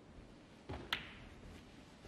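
A cue strikes a snooker ball with a sharp tap.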